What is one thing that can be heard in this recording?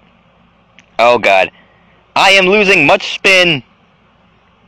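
A young man speaks loudly and animatedly into a close microphone.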